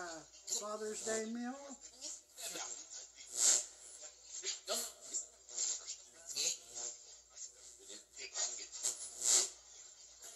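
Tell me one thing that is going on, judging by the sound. A small tablet loudspeaker plays sound.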